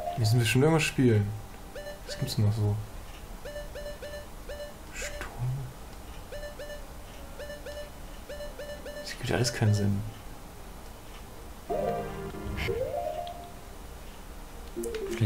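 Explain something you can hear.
A game menu opens and closes with a swooshing chime.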